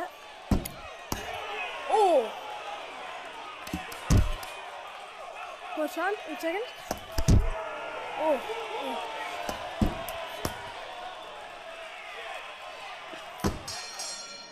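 Gloved punches land with heavy thuds.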